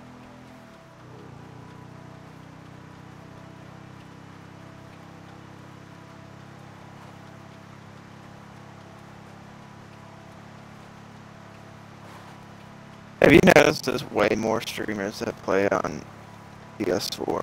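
A quad bike engine hums steadily while riding over a dirt track.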